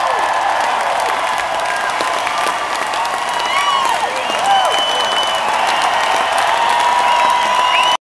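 A rock band plays loud music through powerful loudspeakers.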